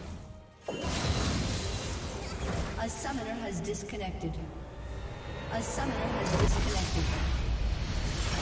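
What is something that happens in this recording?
Magic spells crackle and whoosh in a video game battle.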